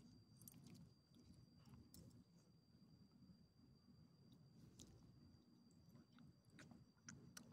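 A small dog chews and tugs at a leash.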